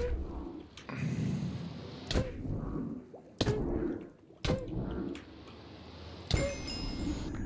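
Sword blows strike a creature with sharp thuds.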